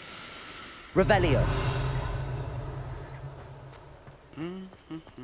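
A spell bursts with a loud shimmering whoosh that slowly fades.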